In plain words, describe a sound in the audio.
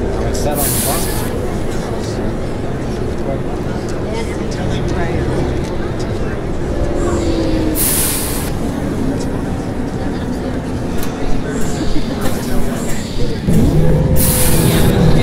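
A diesel city bus engine drones as the bus cruises along a street.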